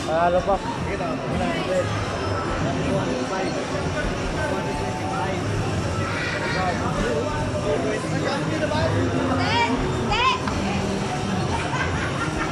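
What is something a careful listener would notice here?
Upbeat music plays from an arcade game's loudspeaker.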